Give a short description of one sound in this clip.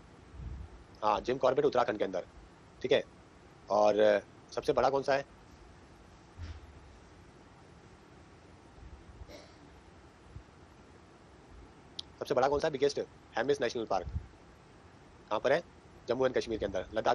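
A man lectures calmly into a close microphone, with pauses.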